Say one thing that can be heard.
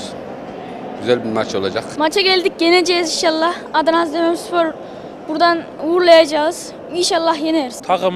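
A young boy speaks into a nearby microphone.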